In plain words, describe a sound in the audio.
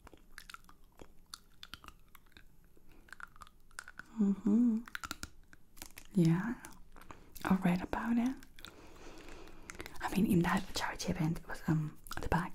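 A pen taps and clicks against teeth close to a microphone.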